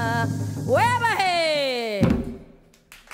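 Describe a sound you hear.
A woman sings loudly into a microphone.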